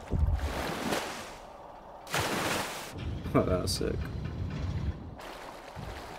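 Bubbles gurgle and rush underwater.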